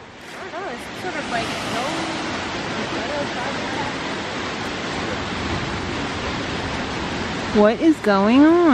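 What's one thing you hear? A stream rushes steadily over rocks.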